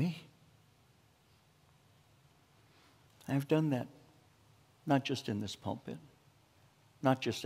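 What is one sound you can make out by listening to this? An older man speaks calmly into a microphone, with pauses.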